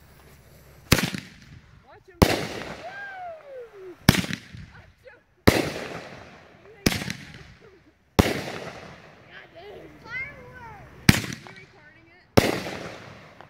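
Fireworks burst with loud bangs overhead, one after another.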